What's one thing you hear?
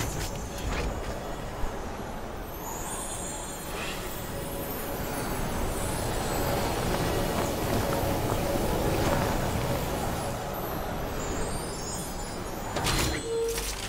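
Wind rushes steadily past a gliding figure.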